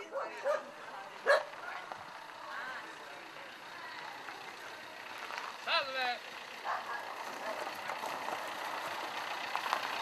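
A car rolls slowly over gravel toward the listener.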